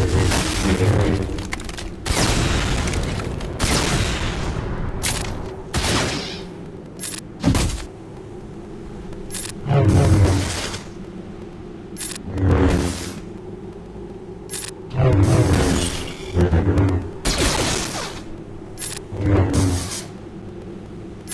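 Lightsabers hum and clash with sharp electric bursts.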